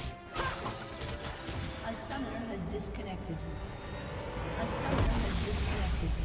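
Game battle effects crackle and boom.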